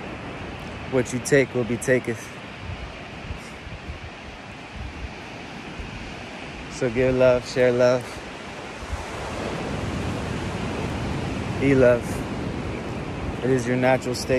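A young man speaks close by in short bursts.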